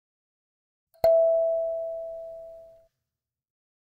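A kalimba tine is plucked once and rings out, slowly fading.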